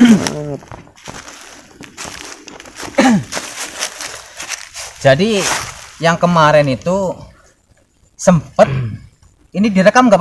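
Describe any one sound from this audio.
Dry leaves rustle under hands digging.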